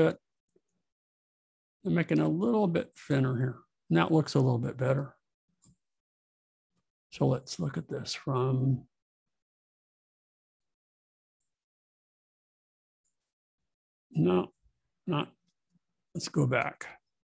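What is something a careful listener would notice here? A middle-aged man talks calmly and closely into a microphone, with pauses.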